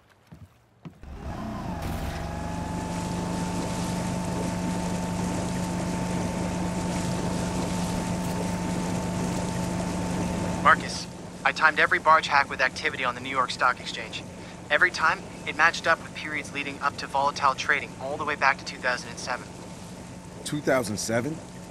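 A motorboat engine starts and roars steadily as the boat speeds across water.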